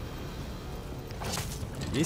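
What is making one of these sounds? Flames roar from a burning jet of fire.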